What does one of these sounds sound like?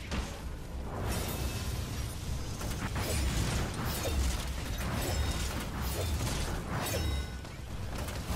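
Energy blasts crackle and explode nearby.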